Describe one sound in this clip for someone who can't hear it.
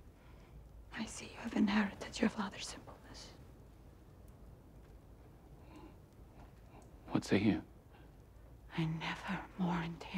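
A woman speaks quietly and tensely, close by.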